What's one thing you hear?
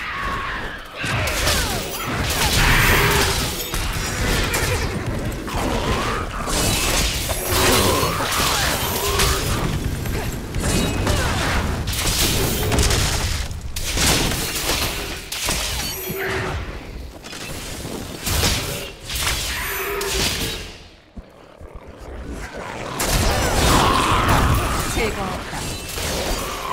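Fiery spell blasts crackle and boom in a fast fight.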